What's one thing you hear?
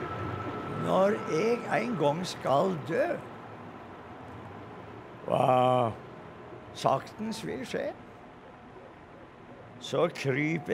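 An elderly man recites slowly and dramatically.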